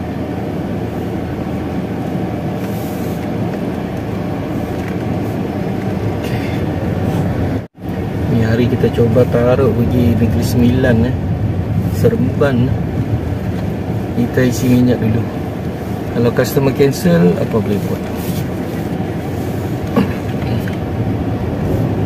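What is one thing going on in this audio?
A car drives along a road with a low, steady rumble.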